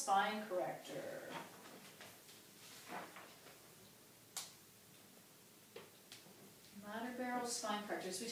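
A woman speaks calmly nearby, pausing between phrases.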